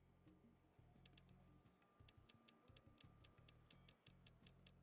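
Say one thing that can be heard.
Quick clicks tap in rapid succession.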